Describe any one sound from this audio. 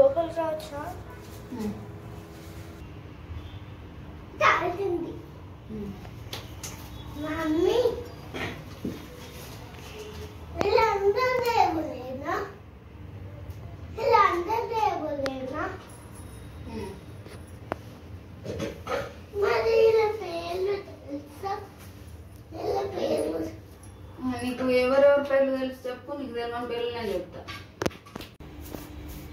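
A young boy speaks nearby.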